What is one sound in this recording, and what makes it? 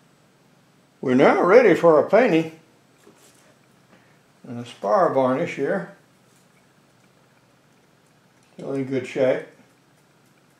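A man speaks calmly close by, in short phrases with pauses.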